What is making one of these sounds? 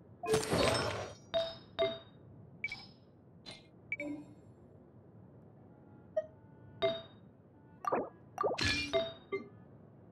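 Short electronic chimes and clicks sound as game menu items are selected.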